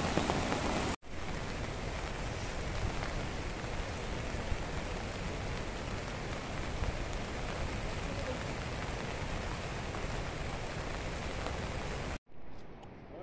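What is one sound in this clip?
Water splashes steadily down a rock face.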